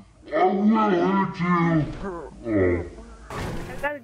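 A car crashes and lands on its roof with a heavy thud.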